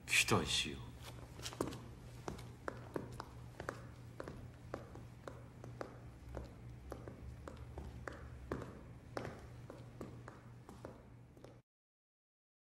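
Footsteps echo along a hard floor.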